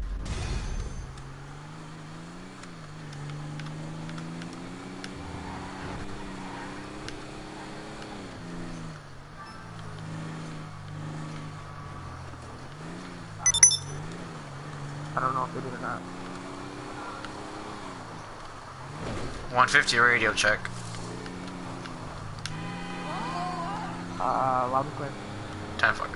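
A car engine hums steadily, its pitch rising and falling as the car drives.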